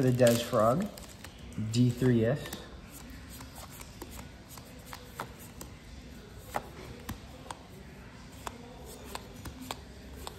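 Playing cards slide and tap softly against each other.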